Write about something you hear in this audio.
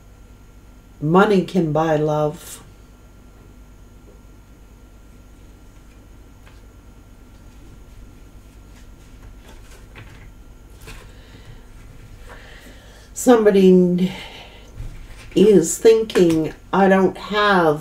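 A middle-aged woman speaks calmly to a nearby microphone.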